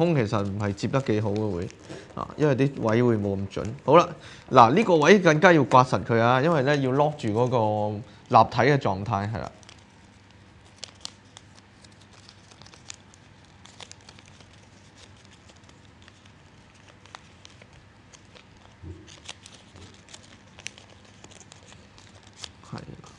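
Paper crinkles and rustles as it is folded.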